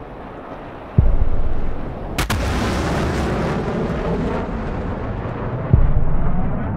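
A missile roars as it launches and streaks through the sky.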